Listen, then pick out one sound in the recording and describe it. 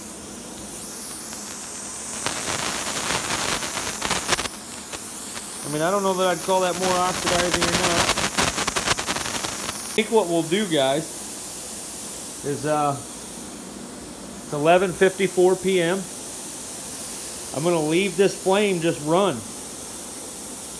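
A gas torch flame hisses and roars steadily.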